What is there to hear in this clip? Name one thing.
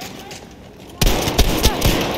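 A pump-action shotgun fires.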